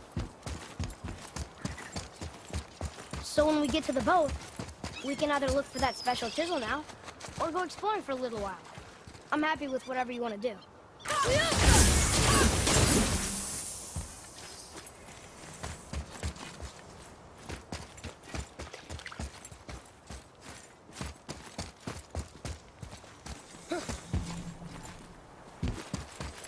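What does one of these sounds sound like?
Heavy footsteps thud quickly on stone.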